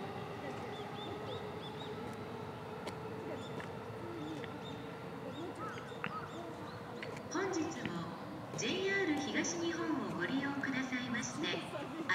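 An electric train hums faintly as it approaches along the tracks.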